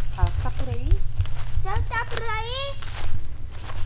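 A child calls out in a high, sing-song voice nearby.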